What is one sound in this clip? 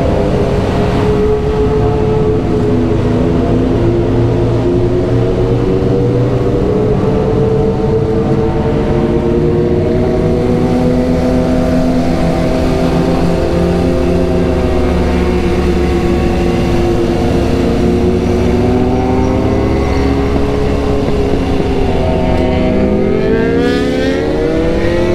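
A motorcycle engine hums up close, its pitch rising and falling with the throttle.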